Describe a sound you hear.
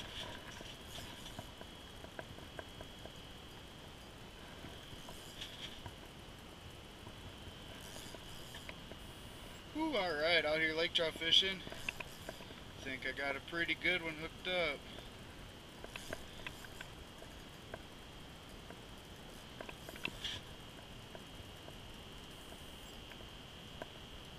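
A fishing reel clicks as its handle is turned.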